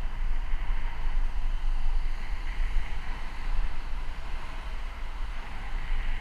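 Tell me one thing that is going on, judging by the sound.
Wind rushes loudly past the microphone while moving outdoors.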